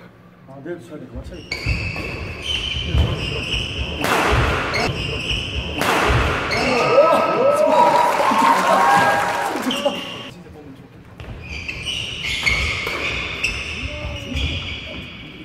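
A shuttlecock is struck sharply with a racket in an echoing hall.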